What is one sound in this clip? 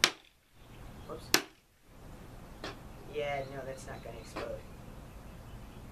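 A wooden stick taps on a plastic tabletop.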